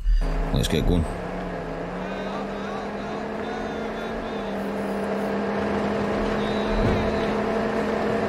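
A pickup truck's engine drones steadily as it drives along.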